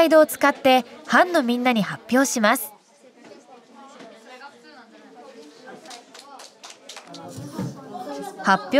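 Children chatter quietly in the background of a room.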